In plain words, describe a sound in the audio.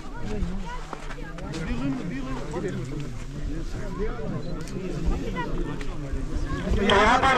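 A crowd of men talks and murmurs close by, outdoors.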